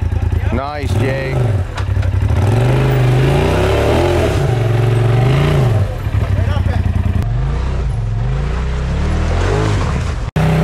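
Tyres grind and crunch over loose rocks.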